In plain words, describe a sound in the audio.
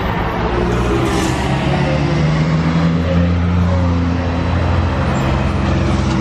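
A bus engine hums and rumbles as the bus drives past.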